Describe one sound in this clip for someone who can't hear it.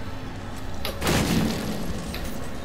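A wooden crate smashes and splinters.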